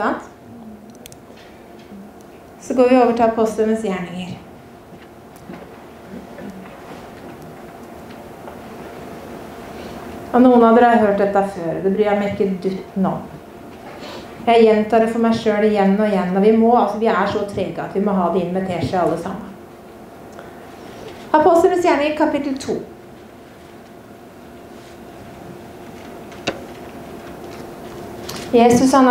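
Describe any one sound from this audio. A middle-aged woman speaks slowly through a microphone, with long pauses, in an echoing hall.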